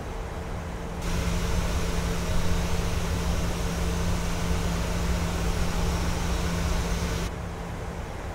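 A jet airliner roars loudly in flight.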